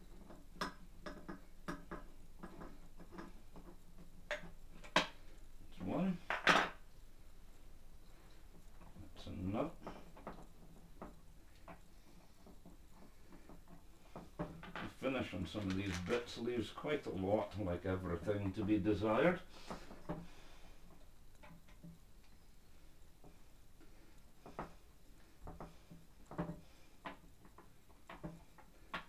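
Small plastic parts click and tap as a man handles them.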